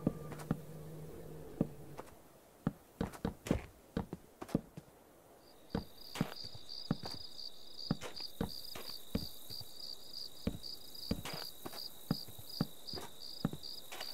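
Wooden blocks are placed one after another with quick, hollow knocks.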